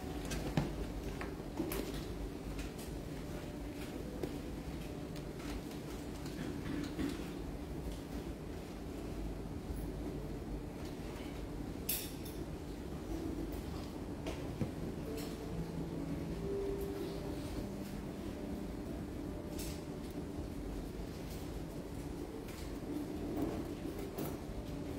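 A middle-aged man reads out calmly through a microphone and loudspeakers in a room with some echo.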